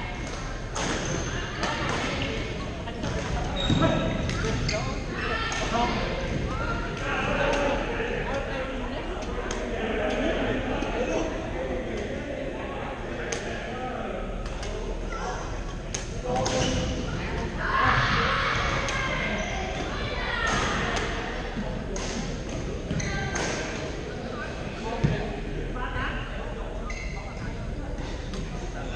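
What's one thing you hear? Shuttlecocks are struck with sharp racket pops throughout a large echoing hall.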